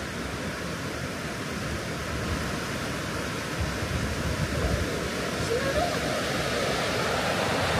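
A mountain stream rushes steadily over rocks.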